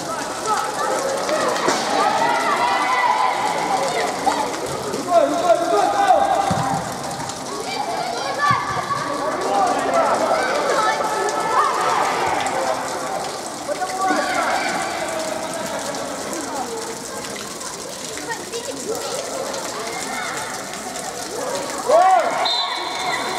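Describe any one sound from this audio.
Young players shout and call to each other in a large echoing hall.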